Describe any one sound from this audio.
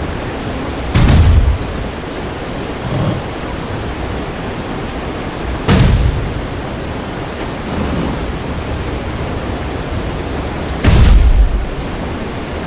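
A heavy wooden crate scrapes across stone and thuds into place.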